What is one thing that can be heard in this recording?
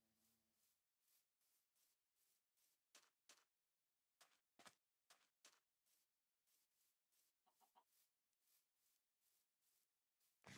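Footsteps crunch softly on grass at a steady walking pace.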